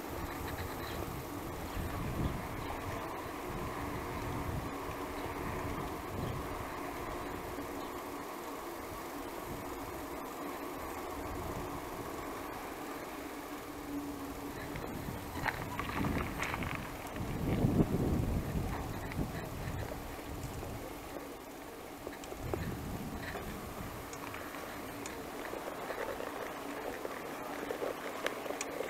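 Wind rumbles in gusts past the rider outdoors.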